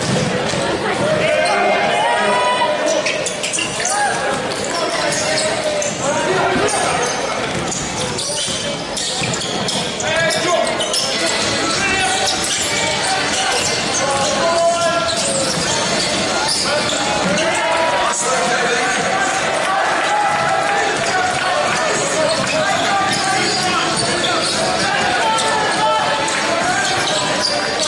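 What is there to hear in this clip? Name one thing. A crowd of spectators murmurs and cheers in a large echoing hall.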